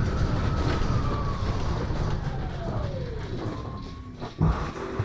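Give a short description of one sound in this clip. A bus engine whine drops in pitch as the bus slows down.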